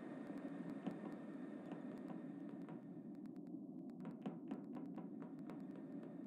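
Quick soft footsteps patter.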